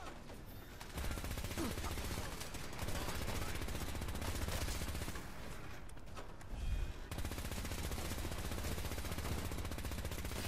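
A heavy machine gun fires in a rapid, continuous rattle.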